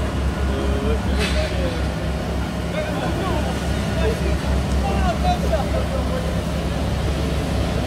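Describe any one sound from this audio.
Several men talk casually as they walk nearby.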